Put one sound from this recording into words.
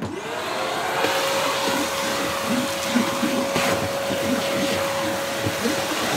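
A vacuum cleaner nozzle scrapes and sucks up sawdust.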